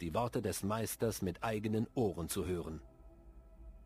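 A man speaks in a deep, dramatic voice.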